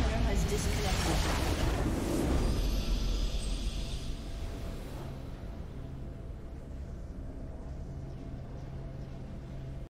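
A triumphant fanfare swells and then holds softly.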